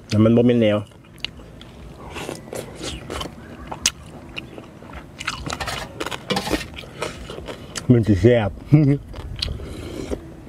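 A man chews and slurps food noisily, close by.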